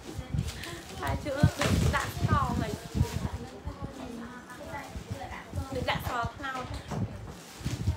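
A young woman talks cheerfully.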